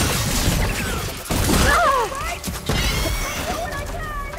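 A large mechanical creature screeches and roars loudly nearby.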